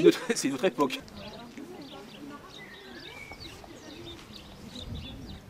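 A group of people chat quietly as they walk, some distance away.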